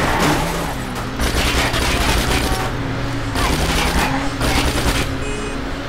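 A motorcycle engine roars close by.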